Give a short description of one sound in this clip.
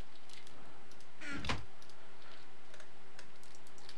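A wooden chest lid thumps shut.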